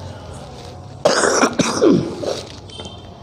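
A man coughs into a microphone.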